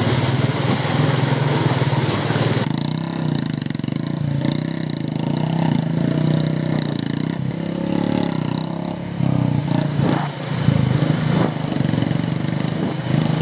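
A motorcycle engine chugs at low speed.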